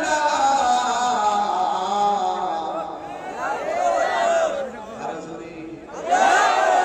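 A young man chants loudly and melodiously into a microphone, heard through loudspeakers.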